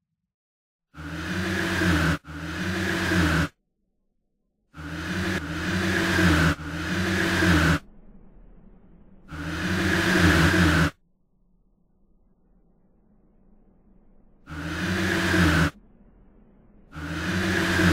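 A wheezing, grinding whoosh swells up again and again in short bursts.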